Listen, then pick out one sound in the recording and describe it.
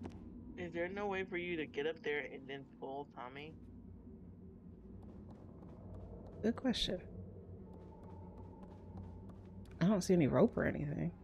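A young woman talks with animation into a microphone.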